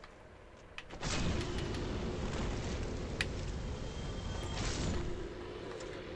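Fire roars in a loud burst.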